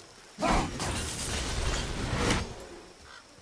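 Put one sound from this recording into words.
A magical burst crackles and hisses loudly.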